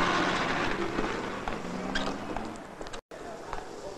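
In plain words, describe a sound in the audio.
Footsteps climb stone stairs.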